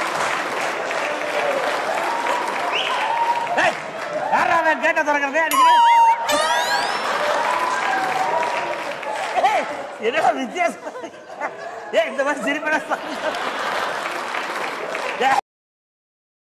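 A woman laughs heartily.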